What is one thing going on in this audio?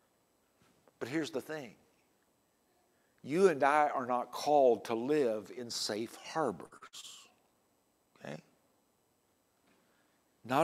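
An older man speaks with expression into a microphone, in short phrases with pauses.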